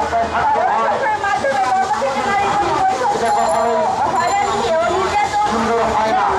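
A young woman speaks forcefully into a microphone, heard through a loudspeaker outdoors.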